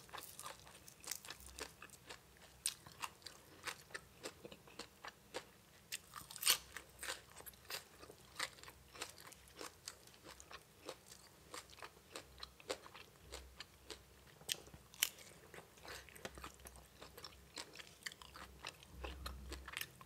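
A young woman chews crunchy food close to a microphone.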